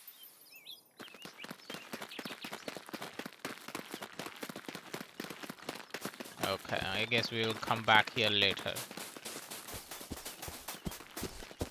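Quick footsteps patter on soft ground.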